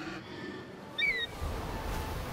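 An eagle lets out a sharp screech.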